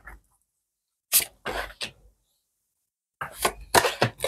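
A card is laid down on a cloth with a soft tap.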